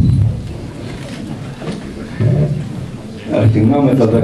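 An elderly man speaks with emotion nearby.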